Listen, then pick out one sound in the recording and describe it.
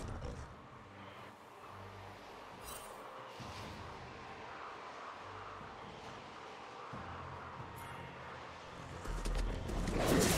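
Magical game effects whoosh and crackle.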